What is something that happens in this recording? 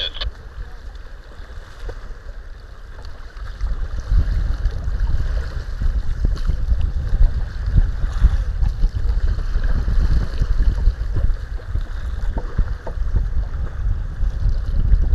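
Choppy water slaps against a kayak's hull.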